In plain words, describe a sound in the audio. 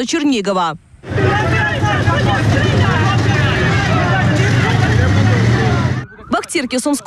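Several men shout and talk loudly close by, outdoors.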